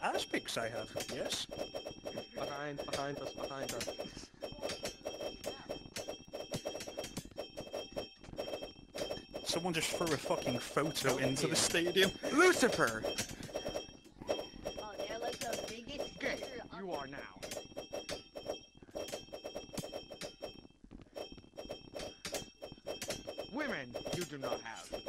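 Swords clash and clang in rapid, busy bursts.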